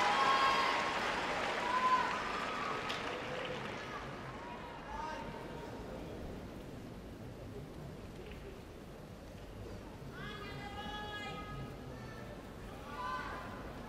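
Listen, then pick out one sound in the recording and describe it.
Ice skates scrape and glide across ice.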